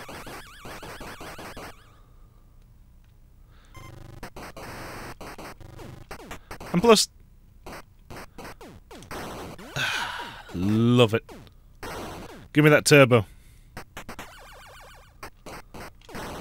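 Retro arcade game sound effects bleep and patter.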